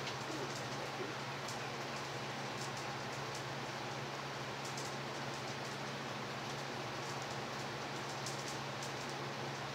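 Plastic gloves rustle faintly against a canvas.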